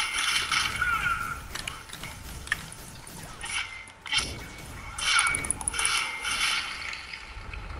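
Weapons strike with sharp, ringing hits in a fast fight.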